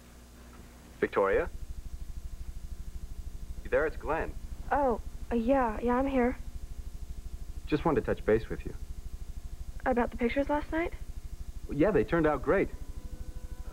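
A young woman speaks into a telephone, upset.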